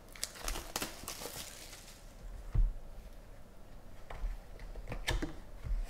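A cardboard box scrapes and taps as hands handle it.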